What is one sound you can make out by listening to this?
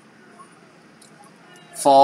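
Plastic pens click against each other.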